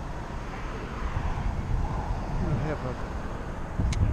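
A pickup truck drives past on the road.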